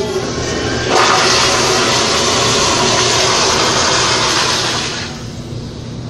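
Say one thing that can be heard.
A toilet flushes with loud rushing water.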